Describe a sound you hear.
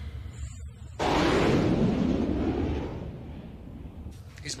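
A spacecraft's engines roar past.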